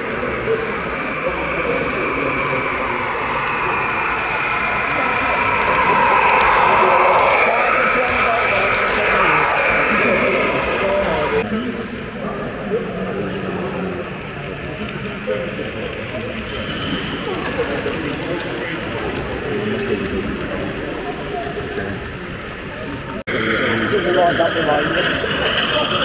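A crowd murmurs in a large, busy hall.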